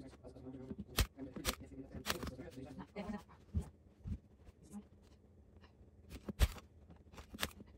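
A staple gun snaps sharply several times.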